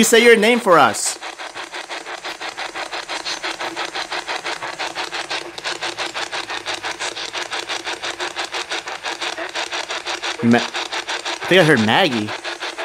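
A handheld radio scanner rapidly sweeps through stations in quick, choppy bursts of static.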